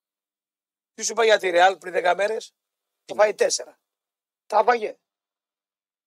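A man speaks with animation in short bursts, as if on the radio.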